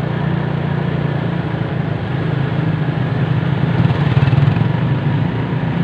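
Other motorbikes pass close by with their engines running.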